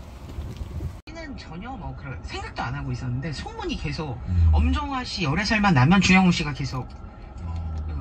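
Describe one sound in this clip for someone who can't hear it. A car radio plays through its speakers.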